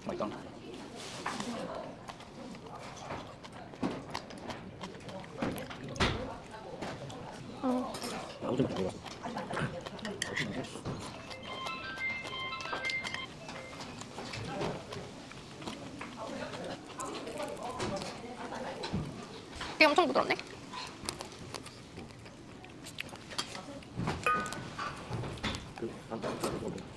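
A young woman chews food noisily, close to a clip-on microphone.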